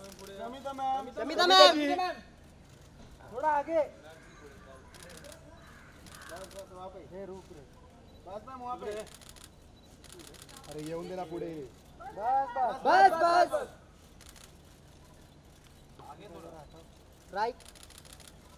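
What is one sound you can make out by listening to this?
Men call out loudly nearby.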